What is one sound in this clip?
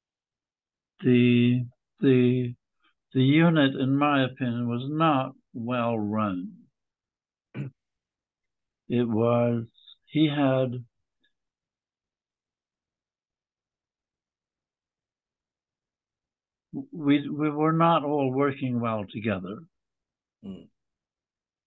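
A man speaks calmly over an online call, with long pauses.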